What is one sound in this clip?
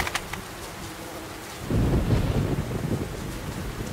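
Wind howls and gusts outdoors.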